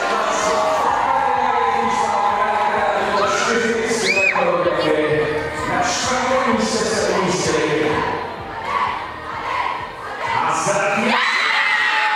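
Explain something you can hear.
A group of young people chatter and talk loudly together.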